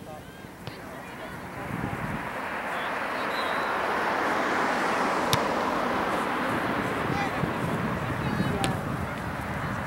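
Wind rushes steadily across an open field, growing louder.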